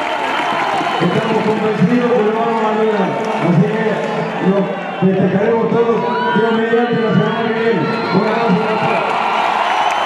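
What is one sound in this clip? A man speaks loudly to a group nearby.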